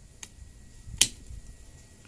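Pruning shears snip through a small twig with a sharp click.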